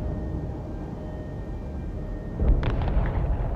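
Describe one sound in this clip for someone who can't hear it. Distant explosions rumble.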